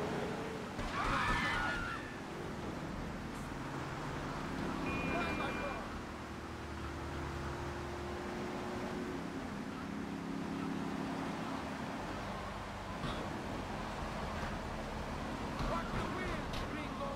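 A car crashes with loud metallic bangs.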